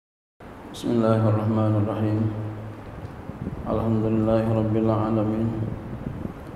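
A man chants in a slow, drawn-out voice through a microphone, in an echoing room.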